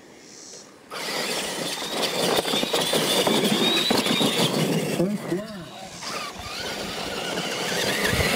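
Small electric toy truck motors whine loudly as the trucks race over dirt.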